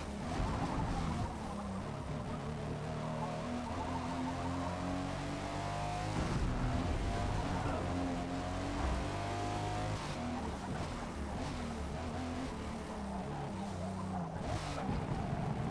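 A car engine revs hard, rising and falling in pitch as gears change.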